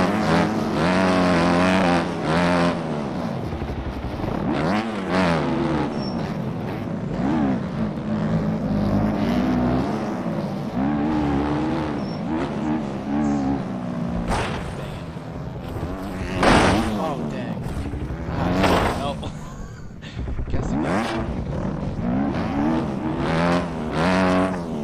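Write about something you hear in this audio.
A motorbike engine revs up and down at high pitch throughout.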